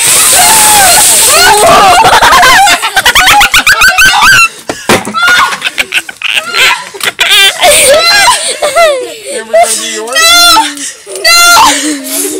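A woman laughs and talks excitedly.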